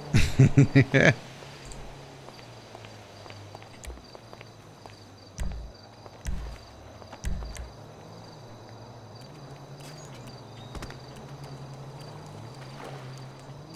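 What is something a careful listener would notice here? Quick footsteps run across hard pavement.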